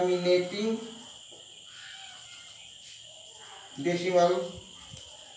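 A man speaks calmly and clearly, nearby.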